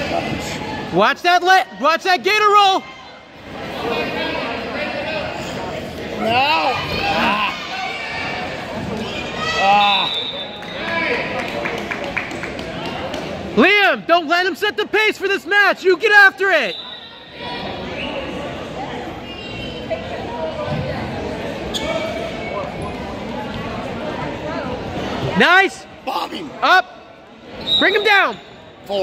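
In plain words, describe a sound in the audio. Adult spectators shout loudly and excitedly nearby.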